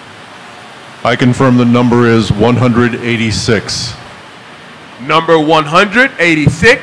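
An older man speaks calmly into a microphone over loudspeakers in a large hall.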